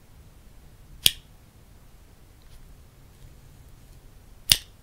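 A spring clamp snaps shut with a sharp click.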